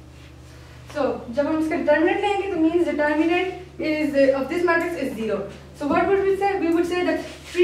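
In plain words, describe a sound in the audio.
A woman speaks clearly and steadily, as if explaining.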